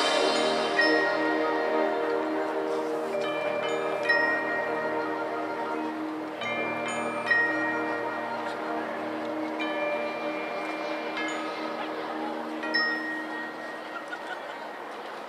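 A marching band plays brass and percussion outdoors.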